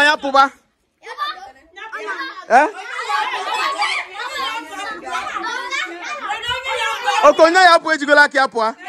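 Children chatter and call out in a lively group nearby.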